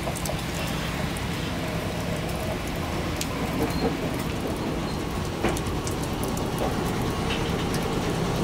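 A train's motor hums steadily as it pulls away.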